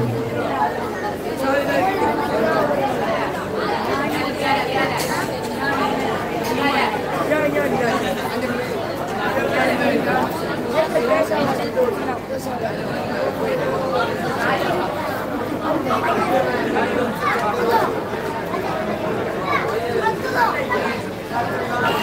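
A group of men sing together through loudspeakers.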